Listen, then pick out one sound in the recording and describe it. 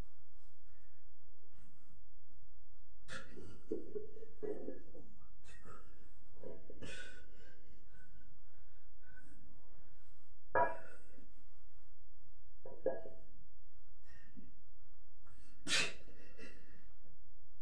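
A heavy weight plate knocks and clunks.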